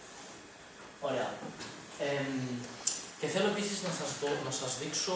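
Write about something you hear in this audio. A young man speaks calmly in a lecture voice.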